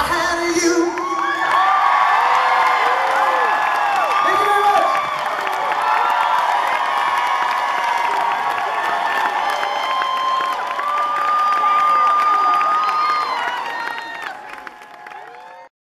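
A crowd of young women screams and cheers loudly.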